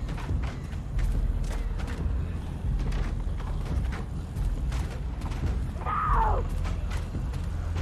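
Footsteps tread on hard ground at a steady walking pace.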